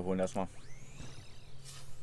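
A teleporter beam hums and whooshes.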